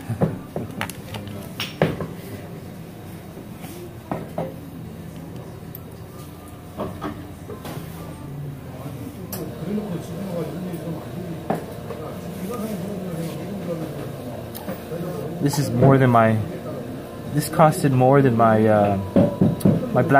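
Men chat quietly at a distance.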